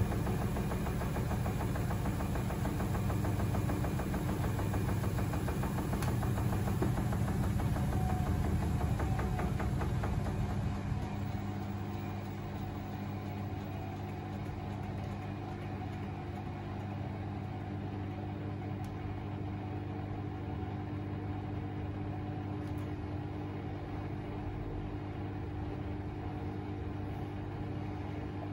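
Laundry tumbles and thumps softly inside a washing machine drum.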